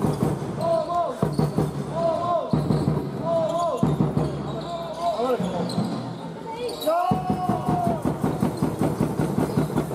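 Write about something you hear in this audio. A basketball bounces repeatedly on the floor.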